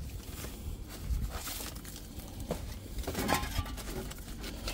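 Cardboard scrapes and rubs.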